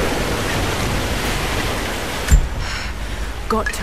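A woman splashes through water while swimming.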